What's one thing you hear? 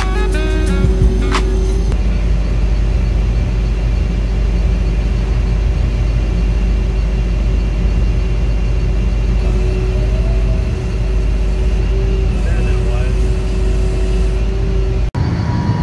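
A diesel locomotive engine idles nearby with a steady low rumble.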